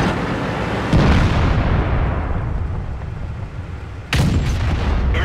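A tank cannon fires with a loud boom that rings out.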